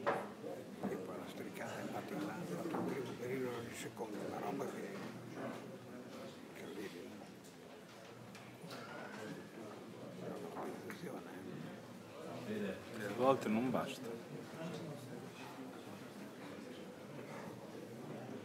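Several men chat quietly nearby in an echoing room.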